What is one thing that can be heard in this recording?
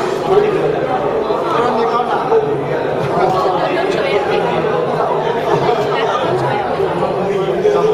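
An elderly man speaks softly close by.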